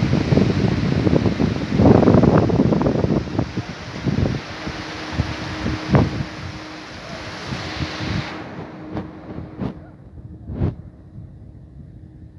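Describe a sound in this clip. Paddle wheels churn and splash water steadily.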